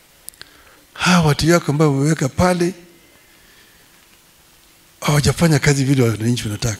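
An elderly man speaks forcefully into a microphone, heard through loudspeakers.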